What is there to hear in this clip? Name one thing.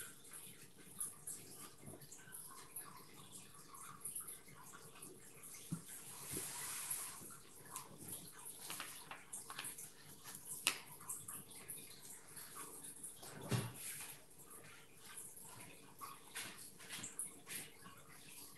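A brush dabs and brushes softly on paper.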